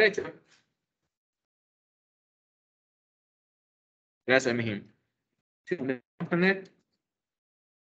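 A young man speaks calmly in short phrases through an online call.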